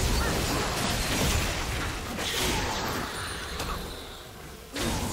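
Video game combat effects clash and burst as characters fight.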